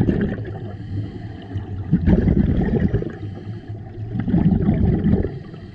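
Scuba air bubbles rumble and gurgle underwater in bursts.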